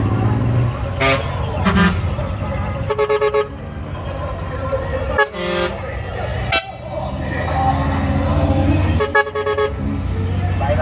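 Truck horns blare in short, melodic bursts.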